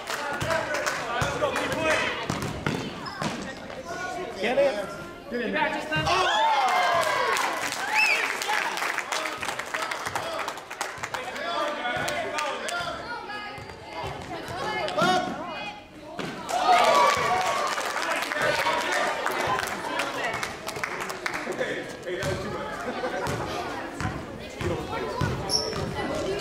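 A basketball bounces on a hard floor in an echoing gym.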